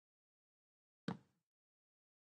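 A block thuds once as it is placed.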